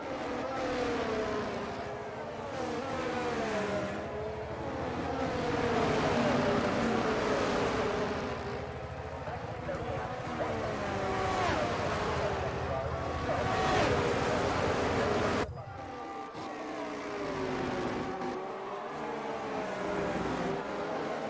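A Formula One car's engine screams at high revs, rising and falling in pitch through gear changes.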